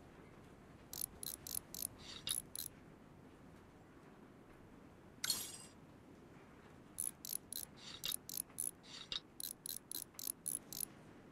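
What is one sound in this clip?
A ratchet wrench clicks in quick bursts as bolts are loosened.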